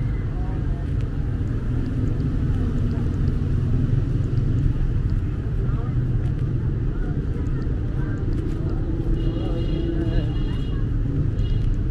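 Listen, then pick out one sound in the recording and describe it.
Traffic hums steadily nearby outdoors.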